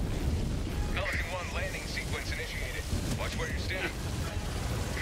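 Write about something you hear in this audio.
A man talks into a microphone, close by.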